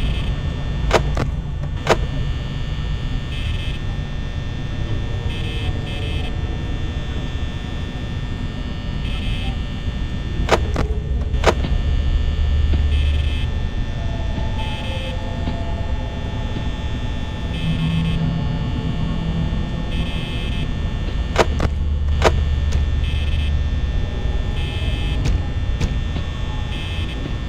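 An electric fan hums steadily.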